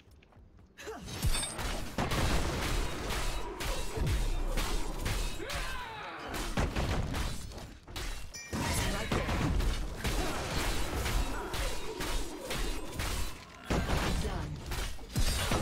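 Fighting sound effects clash and burst rapidly.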